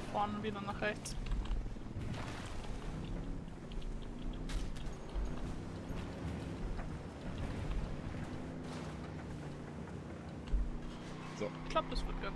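Tyres rumble over rough dirt and grass.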